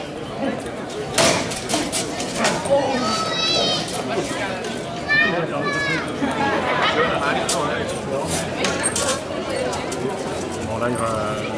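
Swords clash and clang against each other and against shields.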